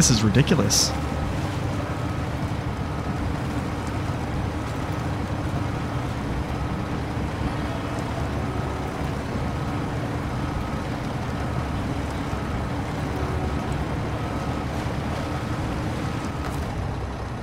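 Water splashes and churns under large tyres.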